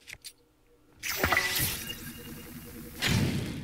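A magical crackling burst flares up and shimmers.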